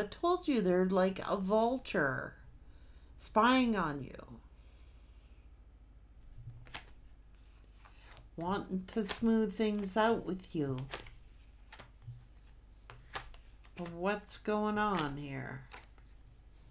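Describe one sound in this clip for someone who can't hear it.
A middle-aged woman speaks close to a microphone, calmly and expressively, with pauses.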